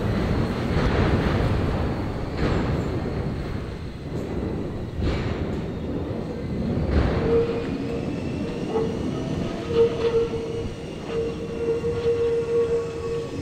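Wind blows and rumbles outdoors.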